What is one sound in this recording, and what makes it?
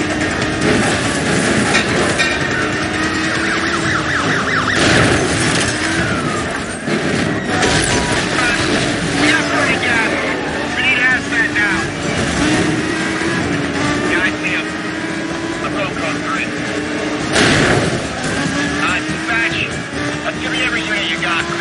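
A car engine roars steadily, rising and falling in pitch as it speeds up and shifts gears.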